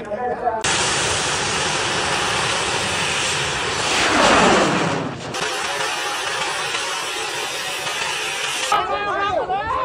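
A rocket roars loudly as it launches.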